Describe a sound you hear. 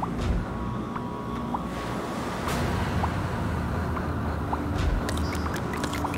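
Gentle waves wash against a shore.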